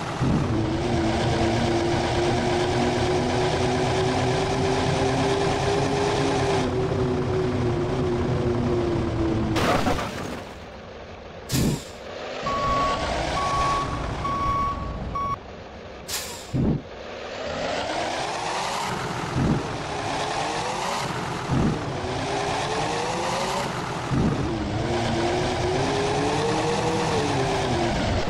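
A bus engine hums and revs steadily, rising and falling in pitch.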